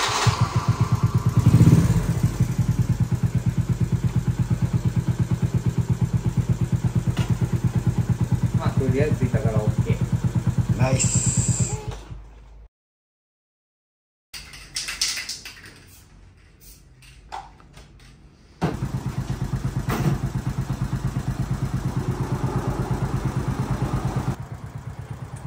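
A small motorcycle engine idles with a steady, rapid chugging.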